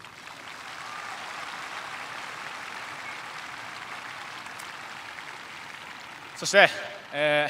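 A stadium crowd murmurs and claps in the distance.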